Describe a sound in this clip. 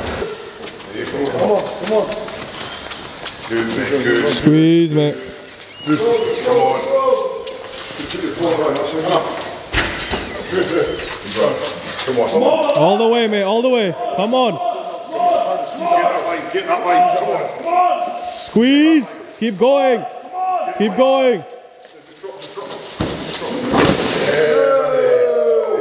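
Several men shout encouragement in an echoing hall.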